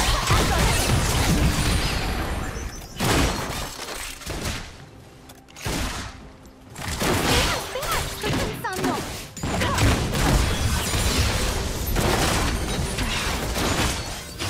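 Game spell effects whoosh, crackle and burst during a fight.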